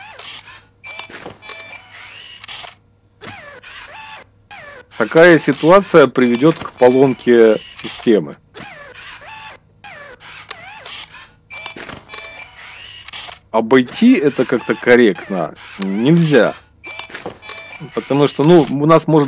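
Robotic arms whir and clank as they move.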